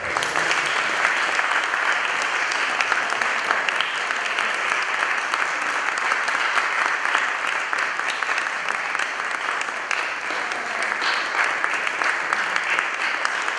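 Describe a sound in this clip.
An audience applauds steadily in an echoing hall.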